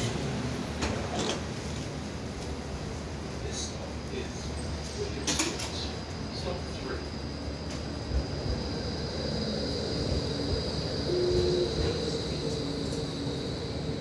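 A tram idles with a steady hum.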